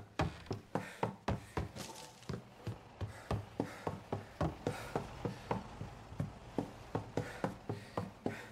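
Quick footsteps run on a wooden floor.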